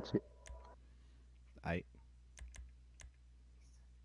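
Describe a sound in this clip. A game menu makes short clicking sounds as options are selected.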